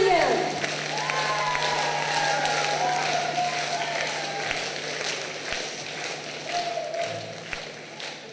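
Audience members cheer and whistle.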